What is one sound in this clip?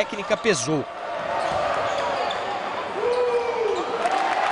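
A crowd cheers in a large echoing hall.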